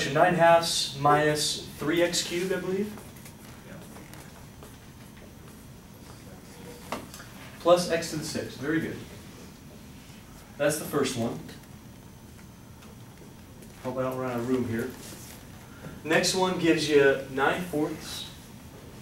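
A man lectures calmly, in short bursts with pauses.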